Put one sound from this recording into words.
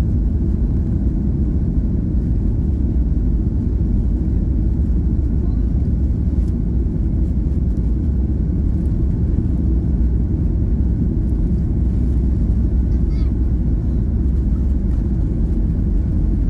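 A jet plane's engines roar steadily inside the cabin.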